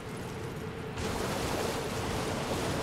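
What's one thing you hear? Water splashes under a horse's hooves.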